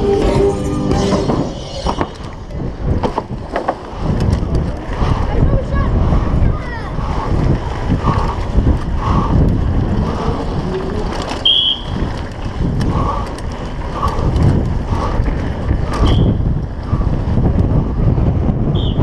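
Wind rushes loudly past a fast-moving bicycle.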